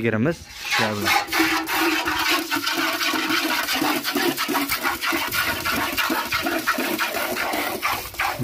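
Milk squirts in rapid spurts into a metal bucket.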